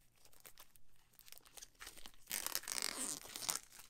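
Plastic film crinkles and rustles loudly as it is peeled off.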